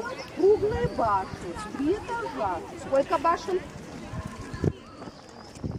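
Children chatter and call out nearby outdoors.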